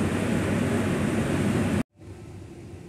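Wind rushes loudly across the microphone outdoors.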